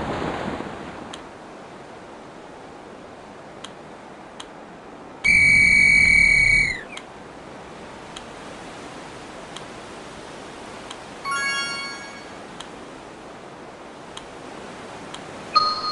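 Water rushes steadily against sailing boats' hulls.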